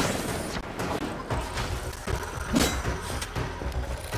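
A burst of energy whooshes loudly.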